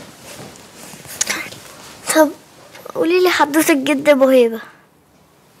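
A young girl speaks in a high, pleading voice, close by.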